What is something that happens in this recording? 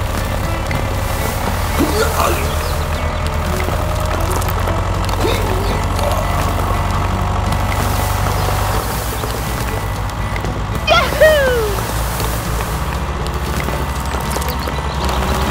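A small toy motor hums steadily as a toy tractor pushes sand.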